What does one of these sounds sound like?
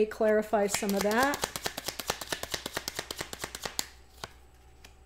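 Playing cards riffle rapidly as a woman shuffles them.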